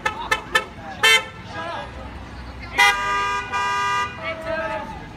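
Car horns honk in short and long blasts close by.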